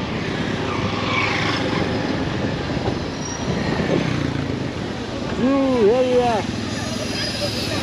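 Traffic passes on a street outdoors.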